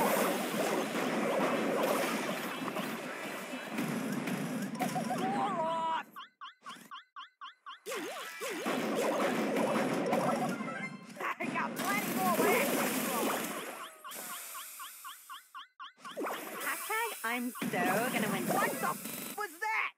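Game sound effects of blasts and shots play in quick bursts.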